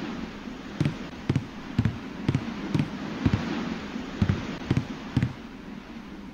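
Footsteps thud at a steady pace on a wooden floor.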